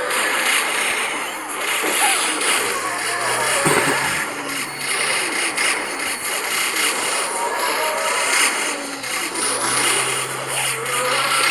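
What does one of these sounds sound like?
Game plants fire a rapid stream of popping shots.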